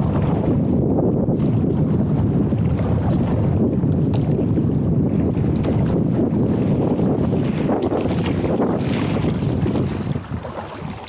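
Rushing rapids roar loudly around a boat close by.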